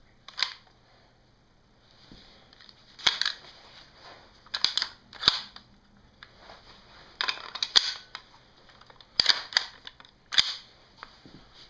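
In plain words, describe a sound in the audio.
Metal parts of a rifle click and clack as they are handled.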